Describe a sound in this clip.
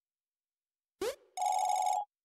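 A quick electronic swoosh sounds once.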